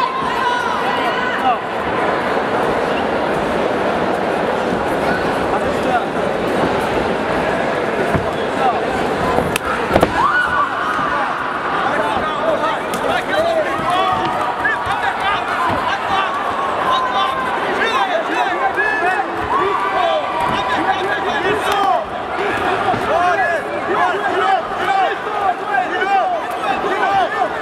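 Men shout instructions from close by.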